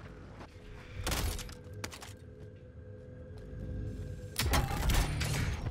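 Gunfire rings out in rapid bursts.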